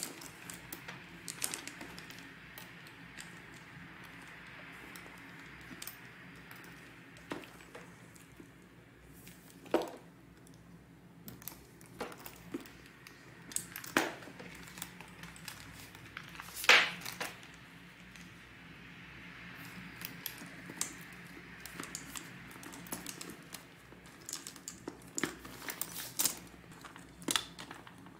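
Leather and items rustle as hands handle them.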